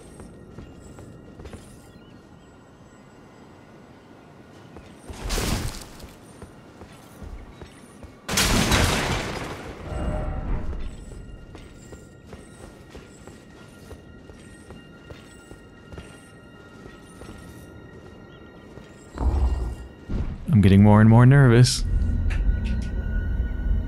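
Footsteps clatter on stone floors and steps.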